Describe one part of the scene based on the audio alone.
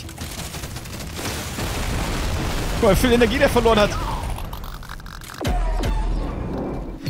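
Explosions burst and crackle in rapid succession.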